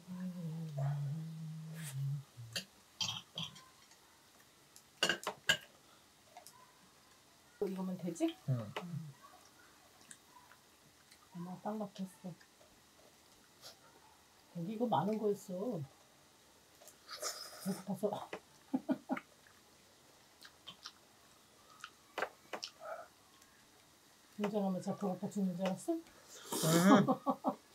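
Someone chews food with wet, smacking sounds.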